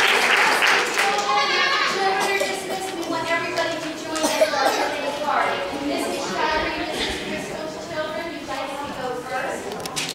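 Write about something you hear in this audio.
A group of children sing together.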